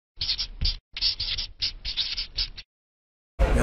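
A marker scratches across paper in quick strokes.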